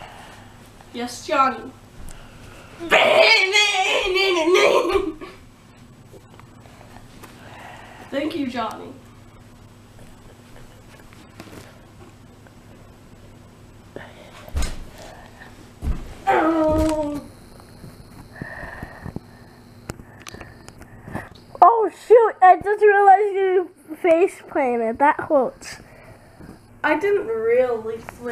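A boy speaks and shouts excitedly close by.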